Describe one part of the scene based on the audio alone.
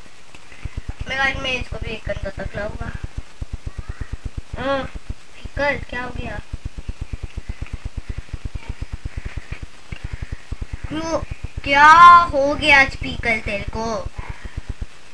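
A young boy speaks close to a microphone with animation.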